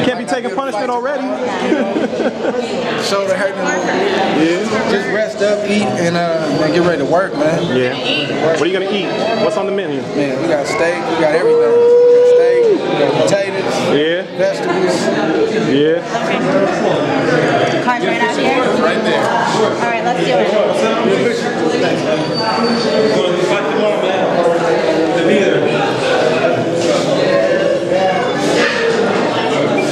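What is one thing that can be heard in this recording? A crowd murmurs and chatters in an echoing hall.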